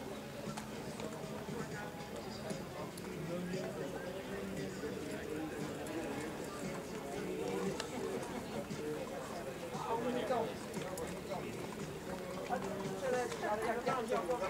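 Horse hooves clop on a path.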